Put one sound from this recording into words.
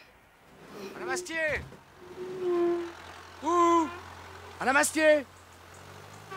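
A man calls out from close by.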